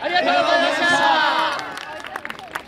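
A group of young dancers shout loudly together outdoors.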